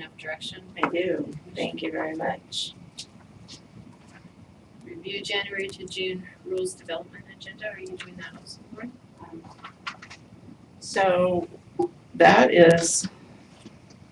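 A man speaks calmly through a microphone in a room that echoes a little.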